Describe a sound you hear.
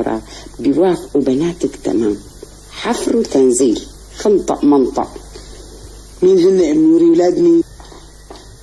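A middle-aged woman talks with animation close by.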